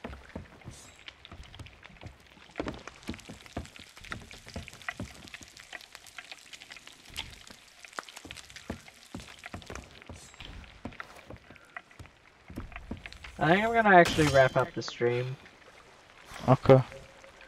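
Waves wash gently against a wooden ship's hull.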